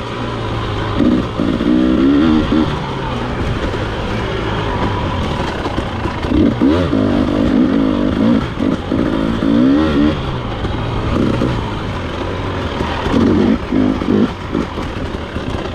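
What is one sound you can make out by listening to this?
A dirt bike engine runs steadily and revs up and down.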